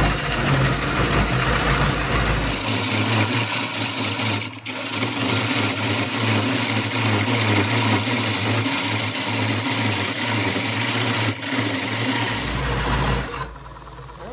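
A gouge cuts loudly into wood spinning on a lathe.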